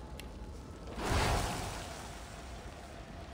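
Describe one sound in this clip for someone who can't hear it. A magical blast bursts with a loud whoosh and fades.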